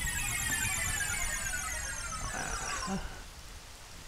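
A magical chime sparkles and rings.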